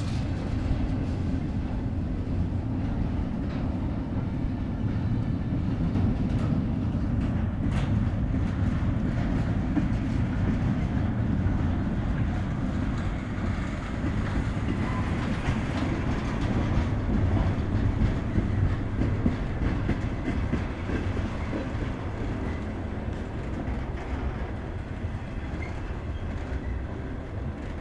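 Train wheels clatter and click over rail joints.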